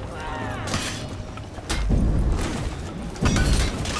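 Metal weapons clash and clang.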